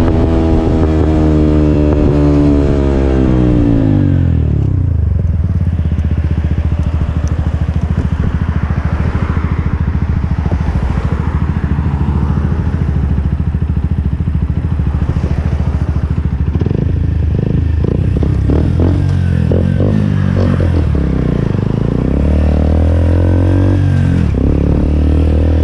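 A motorcycle engine revs up and then winds down.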